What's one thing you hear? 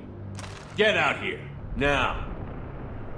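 A man shouts a sharp order close by.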